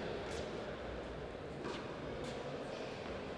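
A tennis ball bounces a few times on a hard court.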